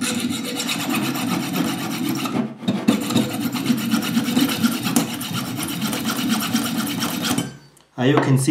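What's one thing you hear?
A power tool grinds harshly against metal.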